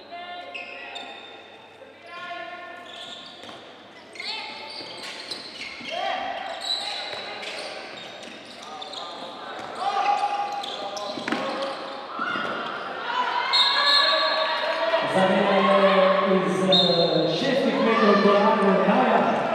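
Sneakers squeak sharply on a hall floor.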